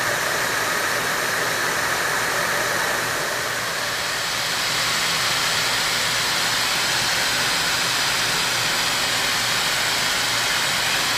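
A milling machine motor hums steadily.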